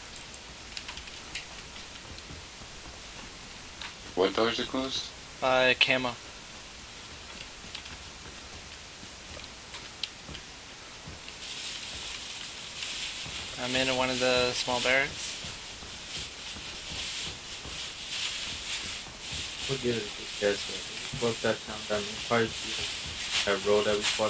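Footsteps run across hard ground.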